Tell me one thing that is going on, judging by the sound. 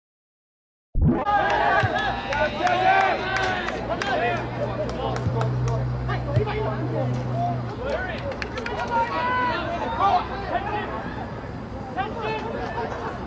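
Young men shout and call out across an outdoor field.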